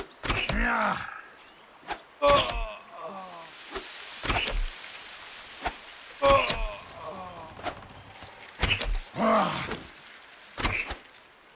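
Video game combat sound effects play in short bursts.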